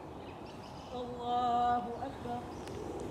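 A man calls out loudly.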